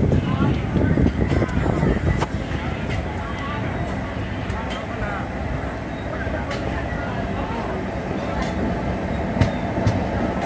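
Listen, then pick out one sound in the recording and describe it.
A train rumbles and clatters steadily along the rails from close by.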